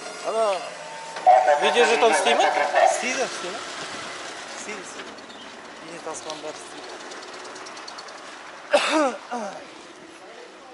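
A man speaks close by, in a tense, raised voice.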